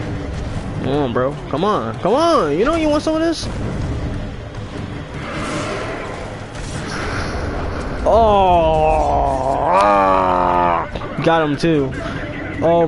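A young man talks excitedly into a headset microphone.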